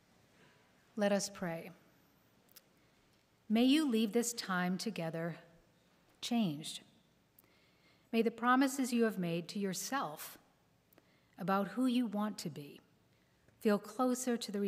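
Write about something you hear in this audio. An older woman speaks calmly into a microphone in a large echoing hall.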